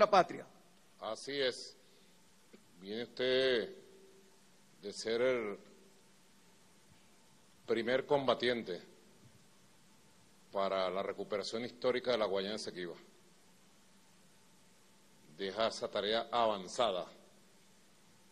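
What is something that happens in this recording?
A man speaks slowly and formally through a loudspeaker, with long pauses between phrases.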